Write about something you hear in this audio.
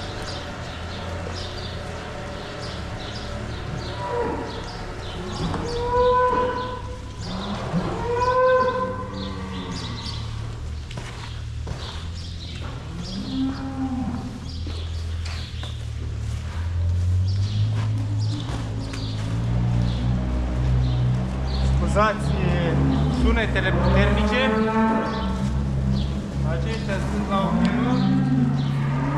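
A rake scrapes through straw.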